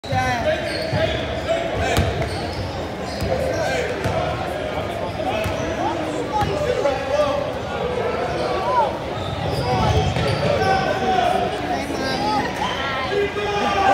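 Children chatter and call out loudly in a large echoing hall.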